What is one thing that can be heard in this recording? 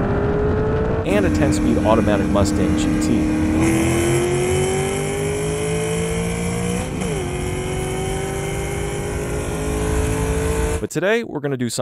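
A car engine rumbles and slowly revs higher close by.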